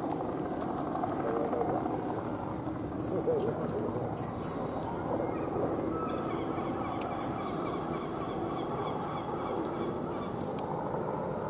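An electric multiple-unit train rolls slowly in along the track.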